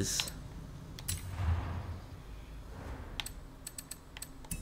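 Short electronic menu clicks tick several times.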